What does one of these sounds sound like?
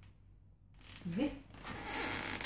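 A woman speaks briefly and brightly to a dog, close by.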